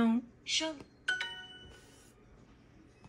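A tablet plays a short bright chime.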